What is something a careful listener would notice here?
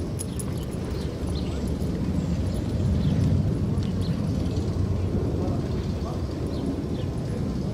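A man's footsteps tap on a pavement.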